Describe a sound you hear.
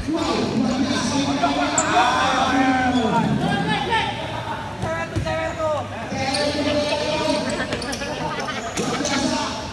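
A crowd of spectators shouts and cheers close by in an echoing hall.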